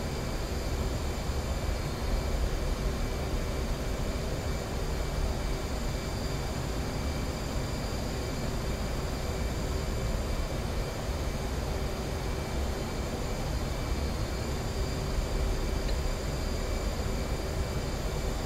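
Wind rushes steadily past a canopy.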